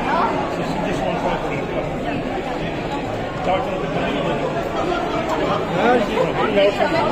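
A woman talks close by with animation.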